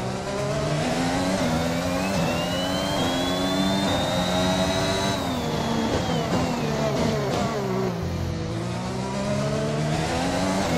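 A racing car engine screams, rising through the gears and dropping as it slows for a corner.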